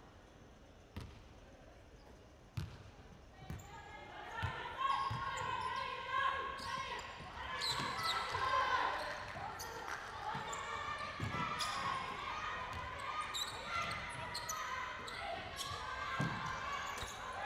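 A basketball bounces on a hard wooden floor in a large echoing hall.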